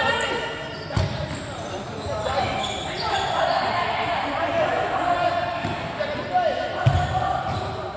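A ball thumps against a hard floor and is kicked.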